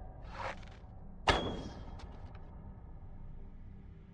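A bowstring is drawn and released with a sharp snap.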